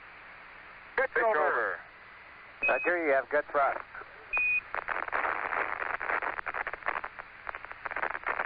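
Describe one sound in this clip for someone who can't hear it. A man speaks excitedly over an online call.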